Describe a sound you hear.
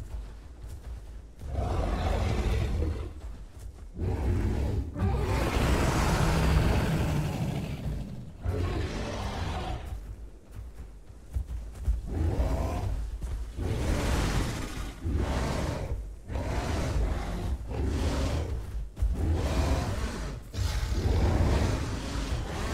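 A large creature's heavy footsteps thud on dirt.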